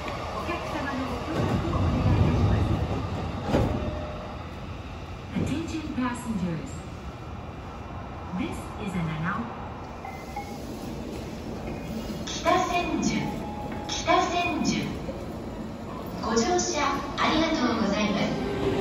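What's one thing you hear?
Many footsteps shuffle and tap on a hard floor in a large echoing hall.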